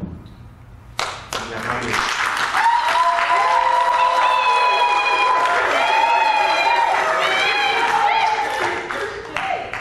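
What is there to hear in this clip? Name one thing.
A congregation claps and cheers in a large room.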